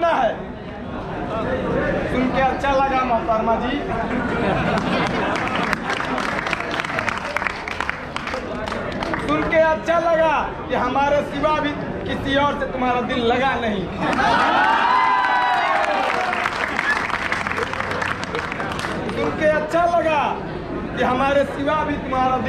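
A young man speaks loudly and with passion to a crowd outdoors.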